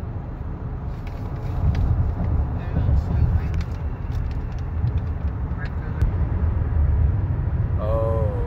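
A car's engine and tyres rumble steadily from inside the car on a highway.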